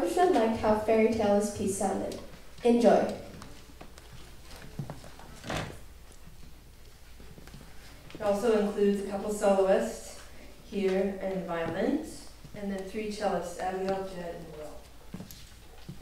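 A woman speaks clearly to an audience in a large hall.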